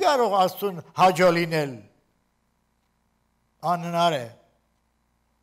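An elderly man speaks calmly and slowly into a microphone, with pauses.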